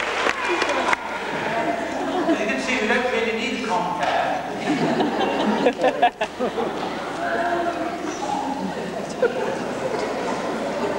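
A man speaks to an audience in a large hall.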